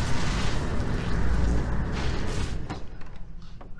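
Heavy machinery rumbles and roars loudly.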